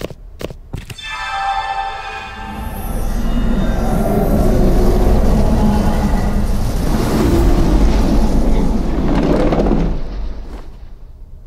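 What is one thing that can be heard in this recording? A shimmering magical whoosh swells loudly and then fades.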